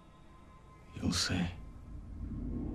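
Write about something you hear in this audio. A man speaks briefly in a low voice, close by.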